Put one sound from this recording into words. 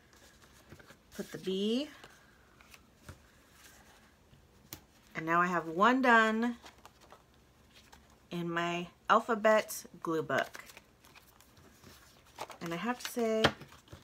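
Paper rustles softly as it is handled and folded.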